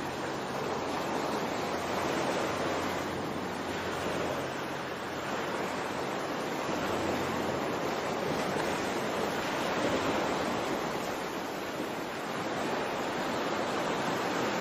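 Gentle waves wash steadily over open water.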